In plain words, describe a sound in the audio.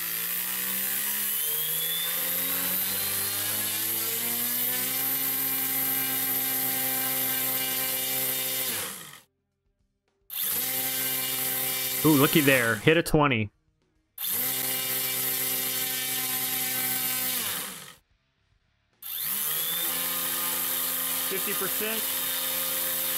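Electric motors whine steadily, rising in pitch and cutting out several times.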